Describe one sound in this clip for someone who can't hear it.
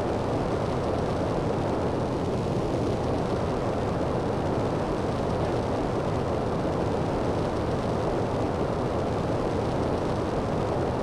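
A jetpack roars steadily as it flies.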